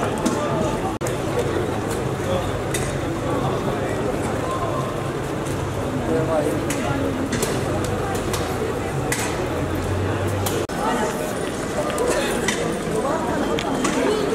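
A crowd of people chatters in a busy street.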